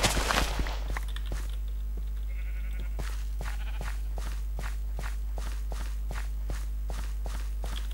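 Seeds are planted with soft, rapid, evenly spaced taps.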